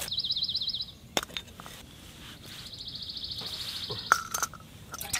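A gas canister scrapes as it is screwed onto a small stove.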